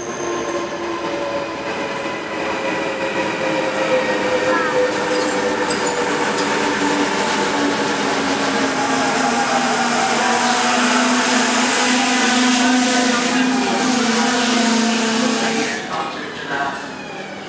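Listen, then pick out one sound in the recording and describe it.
A train rolls through an echoing underground station with a loud rushing roar.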